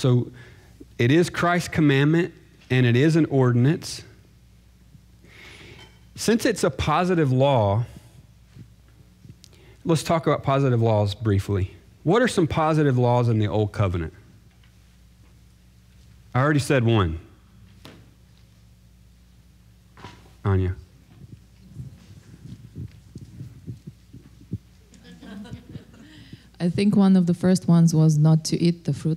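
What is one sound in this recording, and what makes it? A man speaks calmly into a microphone, in bursts with pauses, in a slightly echoing room.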